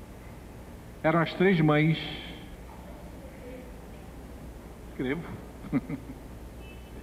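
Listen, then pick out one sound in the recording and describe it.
An elderly man speaks through a microphone in short bursts.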